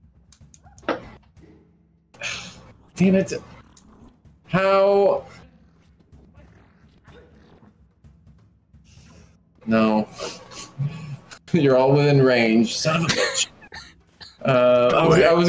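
A man laughs over an online call.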